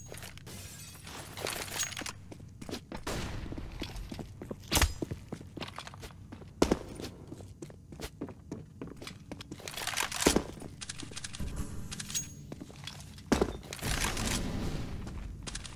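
Game footsteps run across hard floors.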